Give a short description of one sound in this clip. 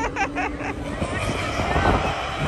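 A large crowd cheers outdoors in the open.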